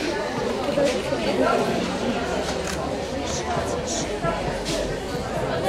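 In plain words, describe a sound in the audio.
Men and women chatter at a distance in a large echoing hall.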